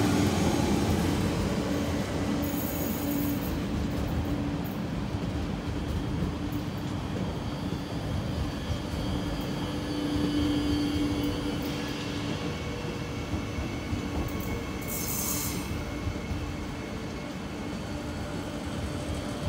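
A passing train rumbles and clatters steadily close by.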